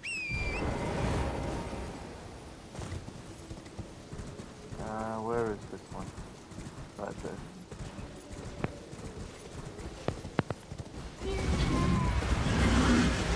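Hooves thud quickly as a horse gallops.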